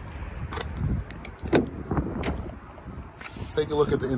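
A car door latch clicks and the door swings open.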